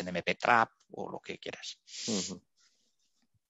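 A middle-aged man speaks through a headset microphone over an online call.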